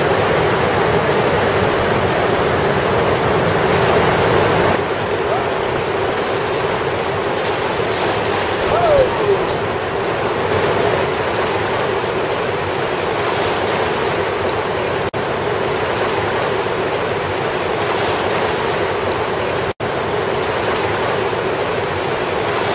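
Whitewater rapids roar loudly and steadily.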